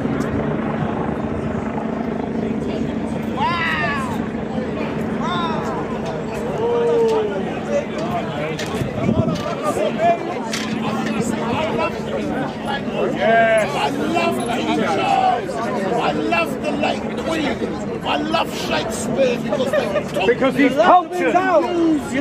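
A crowd of men and women chatters outdoors all around.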